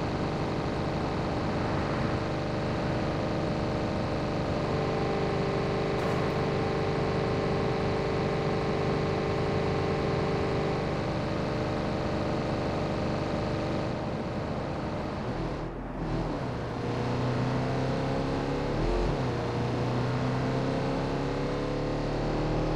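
A van engine hums steadily as it drives along a road.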